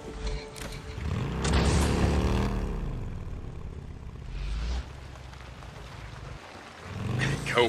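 A motorcycle roars down a road.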